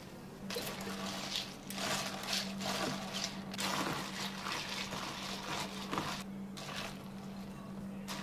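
A spoon stirs ice in a plastic cup, clinking and rattling.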